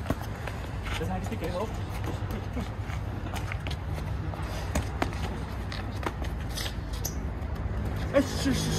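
Boxing gloves thud against punch mitts in quick bursts.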